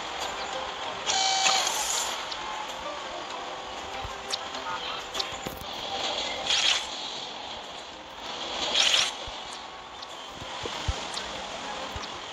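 Soft game chimes sound as menus pop open.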